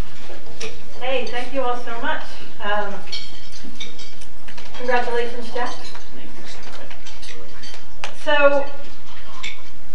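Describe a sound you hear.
A middle-aged woman speaks calmly into a microphone over loudspeakers in a large room.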